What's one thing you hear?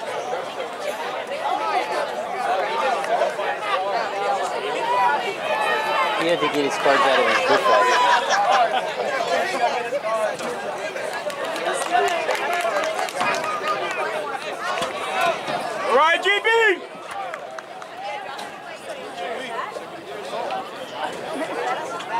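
A crowd of spectators talks and cheers outdoors in the distance.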